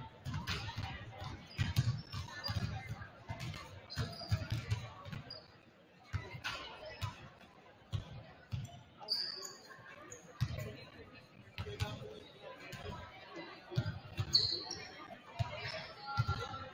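Basketballs bounce with repeated thuds in a large echoing gym.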